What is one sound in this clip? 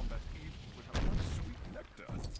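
Plastic bricks crash and clatter as they scatter.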